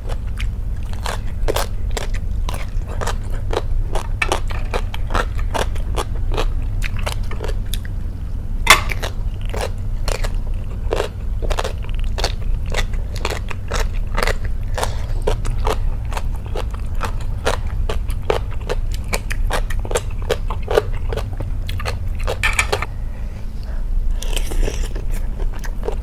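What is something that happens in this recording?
A young woman slurps and chews food loudly and close to a microphone.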